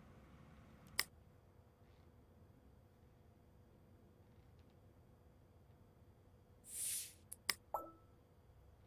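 Short sharp clicks sound now and then.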